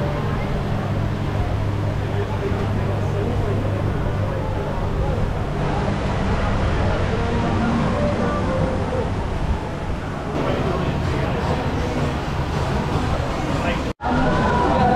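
Wind blows across an open height outdoors.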